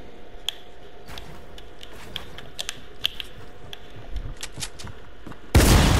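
Building pieces snap into place with quick clicks.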